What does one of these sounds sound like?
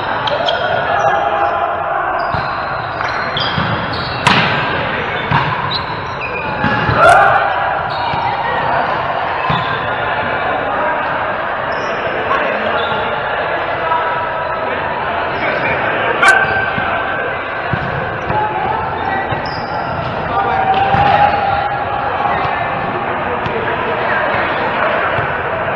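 Volleyball players call out and talk, echoing in a large hall.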